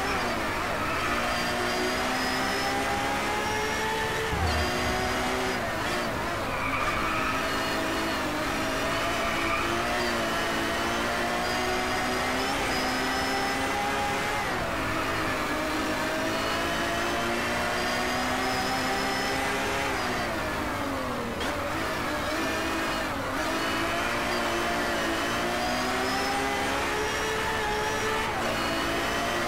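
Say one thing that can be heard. A racing car engine whines steadily, rising in pitch and dropping back at each gear change.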